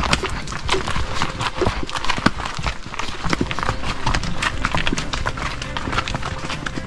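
Horses' hooves clop and crunch on a dry forest trail.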